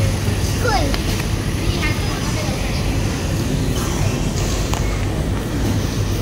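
A shopping trolley rattles as it rolls over a tiled floor.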